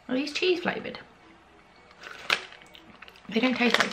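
A snack bag crinkles.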